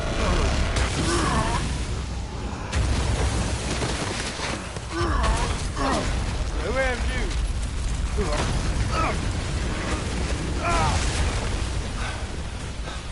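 Rock and ice crash and rumble down in an avalanche.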